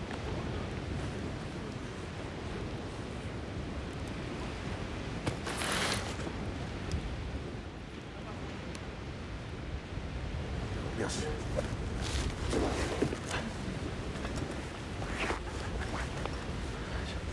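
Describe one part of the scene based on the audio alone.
A man speaks close to the microphone, muffled through a scarf.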